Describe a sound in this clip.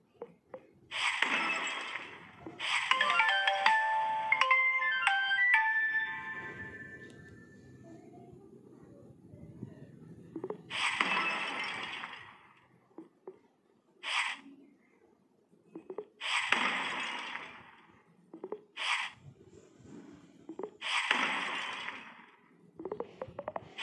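A game's whooshing power blast sweeps over blocks again and again.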